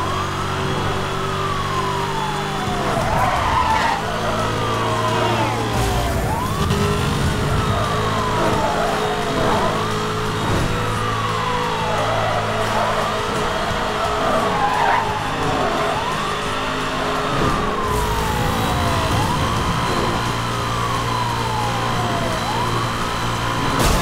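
A sports car engine roars at high speed.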